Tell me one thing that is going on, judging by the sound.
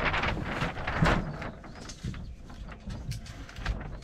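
Wooden beams knock and creak as hands grip them.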